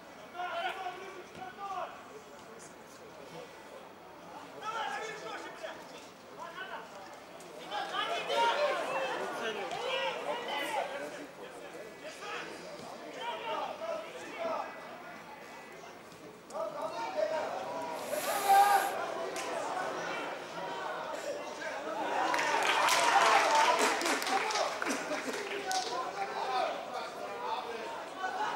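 Men shout and call out to each other across an open outdoor field.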